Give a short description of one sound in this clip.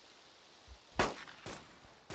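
A pistol shot cracks once.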